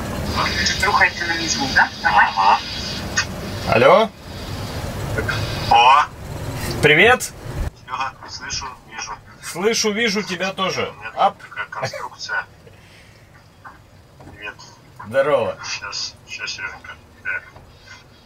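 A man's voice speaks through a laptop speaker on an online call.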